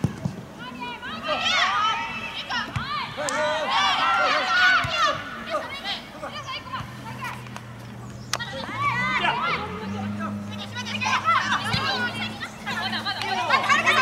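Young women shout and call out to each other across an open outdoor field.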